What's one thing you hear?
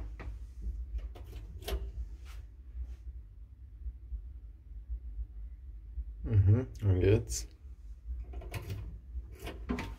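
A finger clicks a lift button.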